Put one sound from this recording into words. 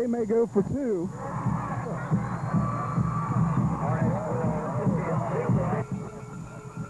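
A crowd cheers and shouts from stands nearby.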